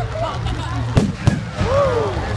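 Fireworks bang loudly outdoors.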